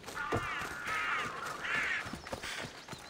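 Crows caw loudly nearby.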